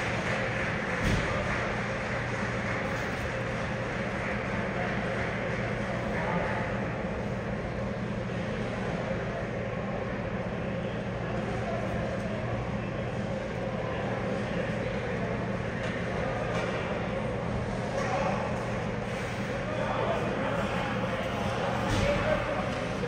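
Hockey sticks tap and clack on the ice.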